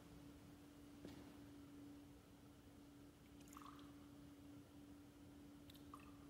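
Water trickles into a metal cup.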